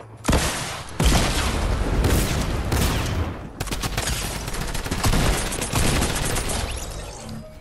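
Explosions rumble loudly.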